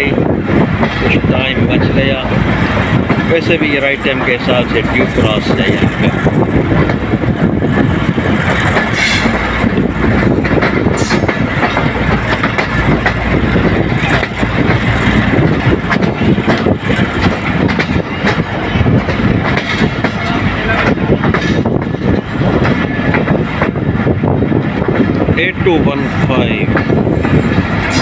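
A train rumbles and clatters steadily along the tracks, heard from close by.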